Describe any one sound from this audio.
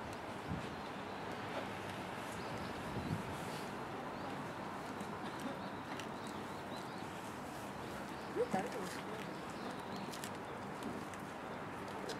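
Horse hooves thud softly on sand.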